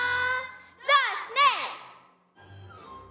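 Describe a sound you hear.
Children sing through a microphone in a large hall.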